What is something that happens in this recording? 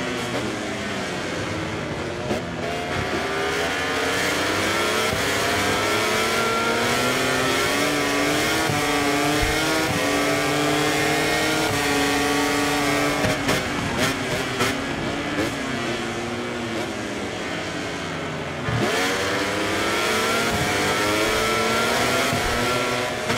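A motorcycle engine roars loudly, its pitch climbing through the gears and dropping when braking.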